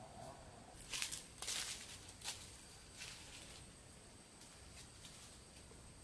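Leaves and branches rustle as fruit is pulled from a tree.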